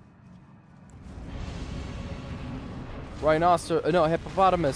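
A huge creature growls with a deep rumble.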